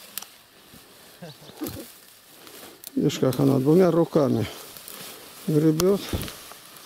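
Hands rummage and scrape in loose soil.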